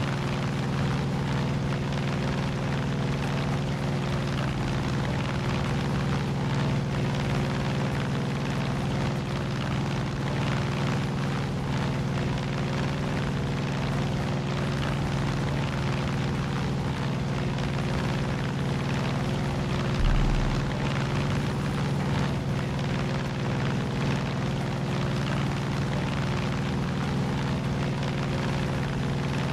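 Wind rushes past the plane.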